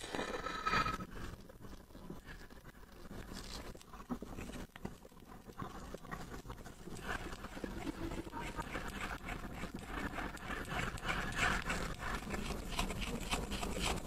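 A plastic tool scrapes and scratches on metal.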